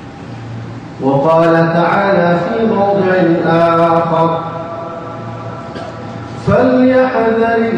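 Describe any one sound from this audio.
A man chants melodiously through a microphone in a reverberant hall.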